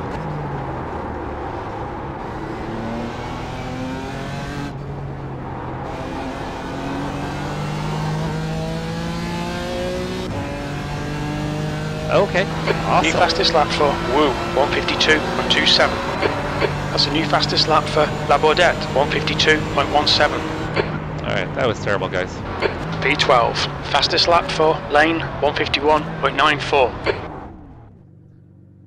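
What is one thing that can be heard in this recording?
A racing car engine revs up and down as it shifts through gears.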